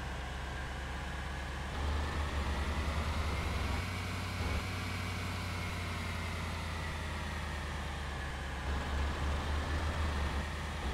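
A bus engine hums steadily and rumbles louder at times.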